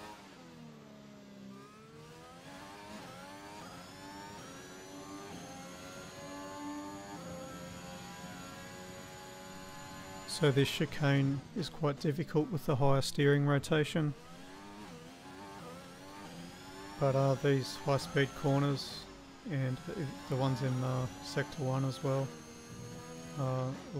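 A racing car engine screams at high revs, rising and dropping in pitch with each gear change.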